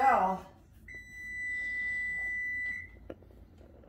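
An oven control beeps with a long steady tone.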